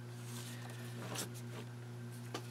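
Paper scraps rustle under hands.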